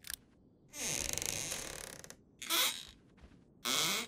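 A wooden wardrobe door creaks open.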